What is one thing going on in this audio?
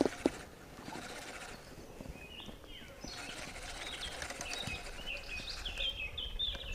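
A fishing reel clicks and whirs as it is handled.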